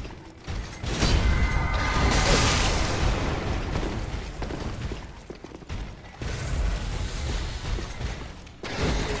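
Weapons strike bodies with heavy thuds.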